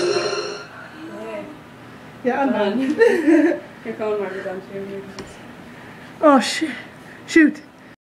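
A young woman talks and laughs close by with animation.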